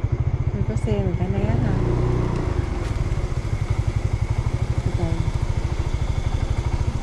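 A motorbike engine putters with a fast, steady low throb.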